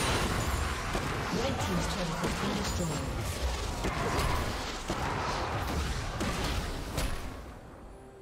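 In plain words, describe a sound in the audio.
Video game spell effects crackle and burst during a fight.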